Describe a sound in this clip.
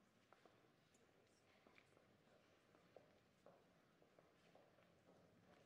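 A crowd murmurs and chats quietly in a large echoing hall.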